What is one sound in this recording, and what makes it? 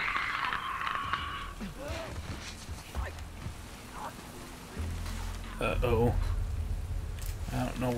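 Tall grass rustles as someone crawls through it.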